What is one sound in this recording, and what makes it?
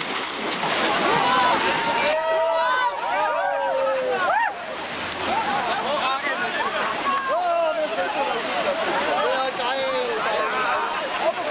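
A crowd of young men and women shout and cheer nearby outdoors.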